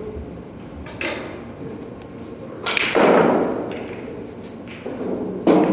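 Pool balls click together as a cue strikes.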